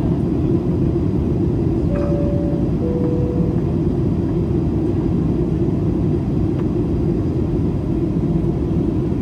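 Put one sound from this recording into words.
A jet engine roars steadily, heard from inside the cabin.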